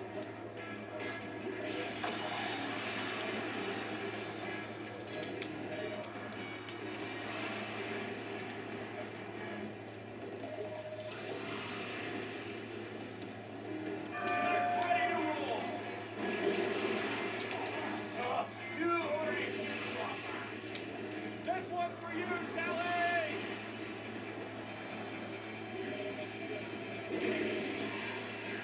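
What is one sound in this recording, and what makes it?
Racing car engines roar and whine from a television's speakers.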